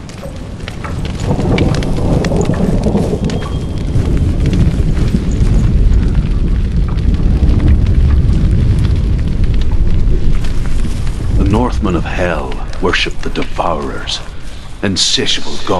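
A deep magical rumble swells and roars.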